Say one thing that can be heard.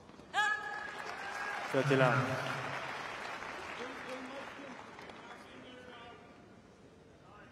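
A crowd cheers and applauds, then fades.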